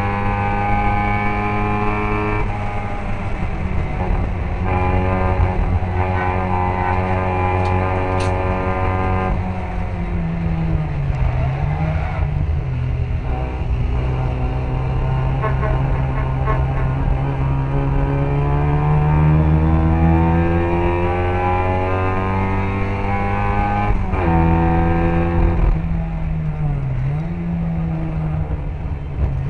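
A small racing car's engine roars loudly close by, revving up and down through gear changes.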